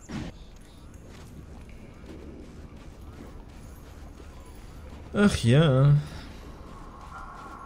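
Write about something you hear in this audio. Footsteps crunch on snow at a run.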